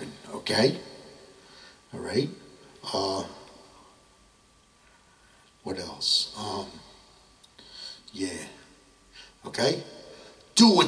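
A man speaks into a microphone in short, halting phrases, with pauses between them.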